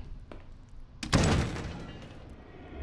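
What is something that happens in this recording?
A wooden door creaks open.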